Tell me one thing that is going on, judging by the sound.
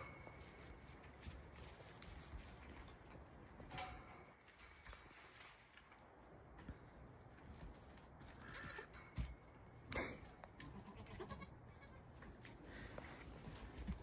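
Young goats scamper and hop, their hooves rustling and thumping on loose straw.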